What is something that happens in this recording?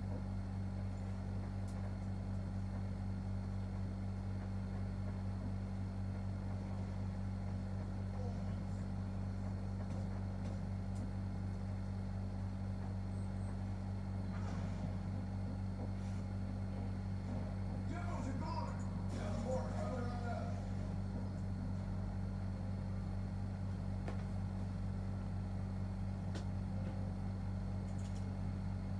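Video game sounds play quietly from a television speaker.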